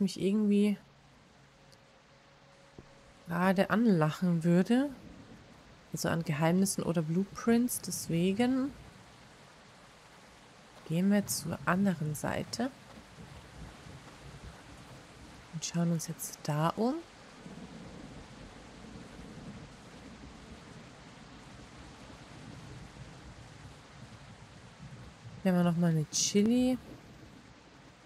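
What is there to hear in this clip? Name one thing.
A young woman talks casually and animatedly into a close microphone, in short bursts.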